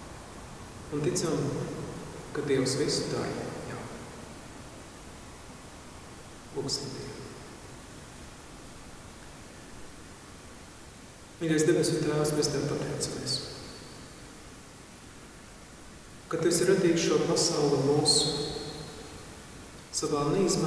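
A man speaks calmly into a microphone, with pauses, in an echoing hall.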